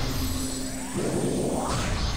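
A loud explosion bursts.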